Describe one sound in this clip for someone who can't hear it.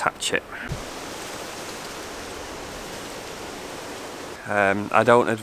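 Wind rustles through leaves.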